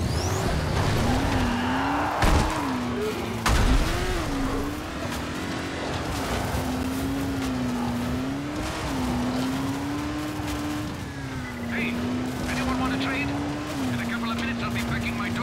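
An engine revs, rising and falling in pitch.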